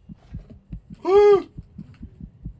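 A hippo grunts and bellows loudly.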